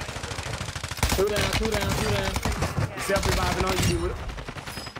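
Rapid gunshots ring out in a video game.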